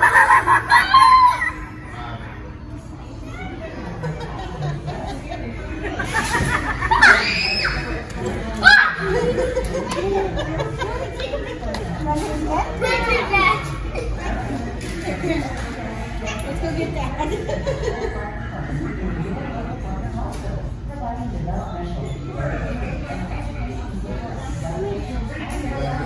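Shoppers chatter in the background.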